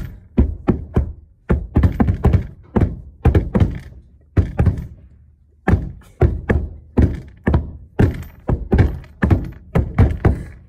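A hand knocks hard on a wooden board close by, in quick uneven bursts.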